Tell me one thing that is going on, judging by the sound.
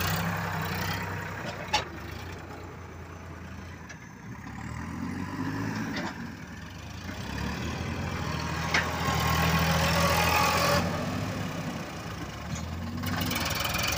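Heavy tyres roll and crunch over loose dirt.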